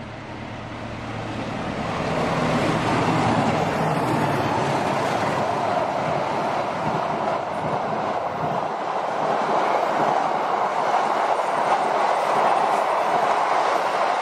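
A train approaches and rumbles past close by, wheels clattering on the rails.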